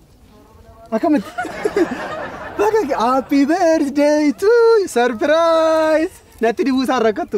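A young man laughs heartily nearby.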